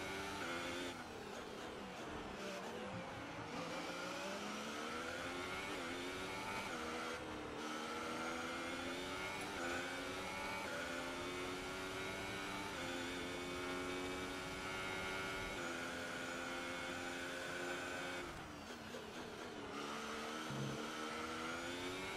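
A racing car engine slows and drops in pitch when braking for corners.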